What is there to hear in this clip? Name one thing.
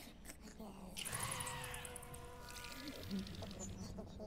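A creature lets out a shrill, warbling cry.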